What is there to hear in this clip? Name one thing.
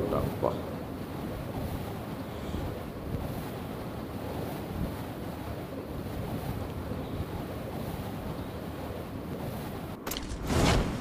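Air rushes past steadily during a free fall.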